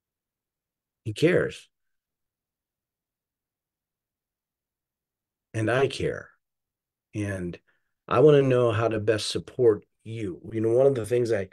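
An older man speaks calmly over an online call, with pauses.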